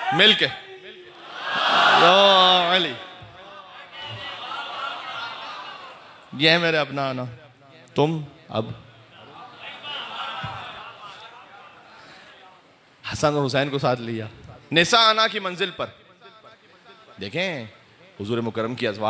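A man speaks with passion into a microphone, his voice amplified in an echoing room.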